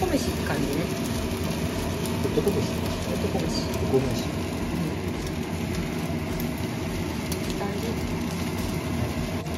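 A wooden spatula scrapes and taps against a frying pan.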